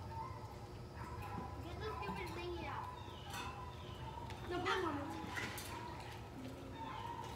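Children talk and call out near a pool.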